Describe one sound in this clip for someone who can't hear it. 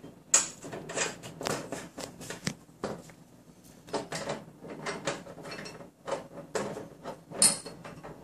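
Metal brackets clink and scrape against a metal plate.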